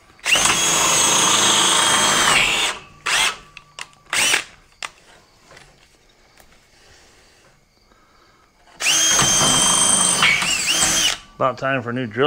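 A cordless drill whirs loudly in long bursts.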